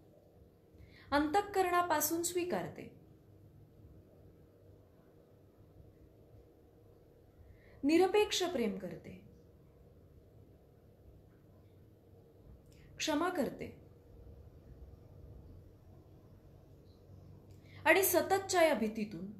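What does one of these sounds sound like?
A young woman speaks calmly and close to the microphone, in short phrases with long pauses.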